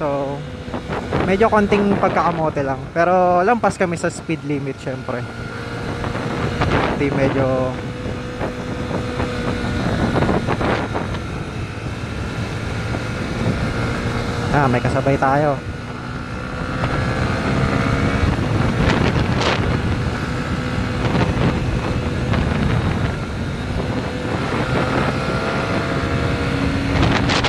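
A motorcycle engine drones and revs up and down close by.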